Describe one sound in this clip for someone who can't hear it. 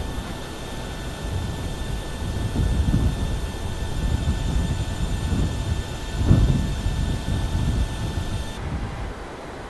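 A jet engine whines steadily at idle.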